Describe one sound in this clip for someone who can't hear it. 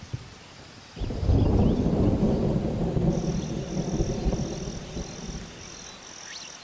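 Rain pours down steadily.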